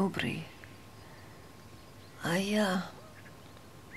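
A woman speaks a few short words close by.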